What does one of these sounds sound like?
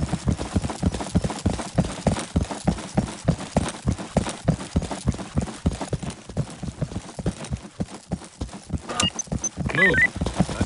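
Footsteps thud steadily on pavement.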